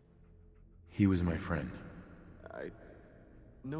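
A second man speaks quietly and sadly.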